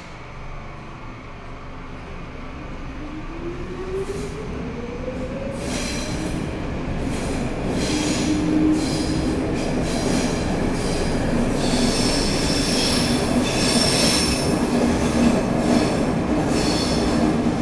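A subway train rumbles and clatters along the rails, growing louder.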